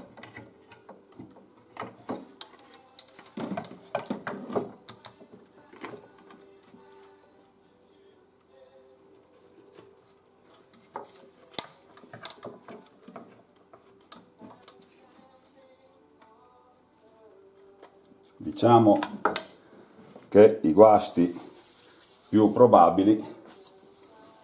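Plastic and metal parts click and clatter as hands handle a small device up close.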